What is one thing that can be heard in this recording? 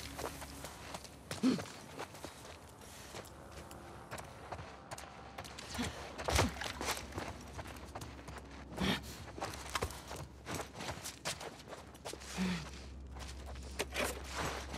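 Footsteps crunch on debris and a littered floor.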